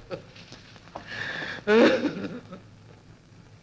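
A young man sobs and wails close by.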